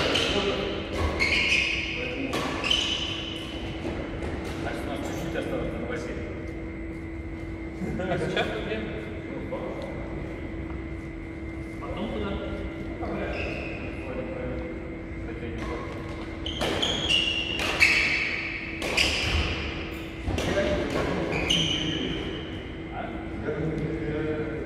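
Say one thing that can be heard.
Shoes squeak sharply on a sports floor.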